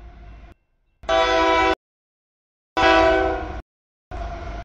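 A locomotive horn blasts loudly.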